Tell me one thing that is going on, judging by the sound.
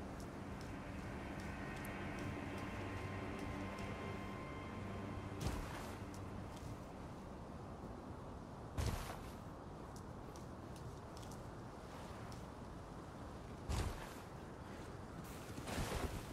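Armored footsteps clank on stone.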